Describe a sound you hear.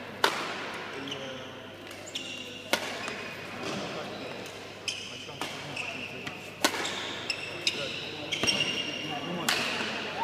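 Sports shoes squeak sharply on a hall floor.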